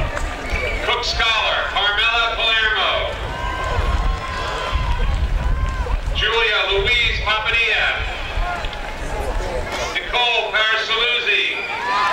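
A large crowd sings loudly together in repeated bursts.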